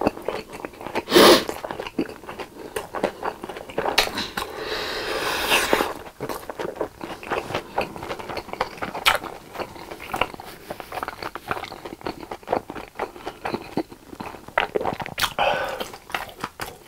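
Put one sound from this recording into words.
A young man slurps and sucks air through his lips, close to a microphone.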